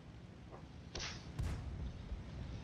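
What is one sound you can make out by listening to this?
A tank gun fires with a loud boom.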